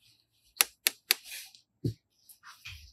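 Plastic eggs click and tap against each other.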